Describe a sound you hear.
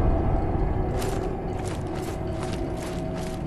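Heavy armoured footsteps clank and scrape on stone.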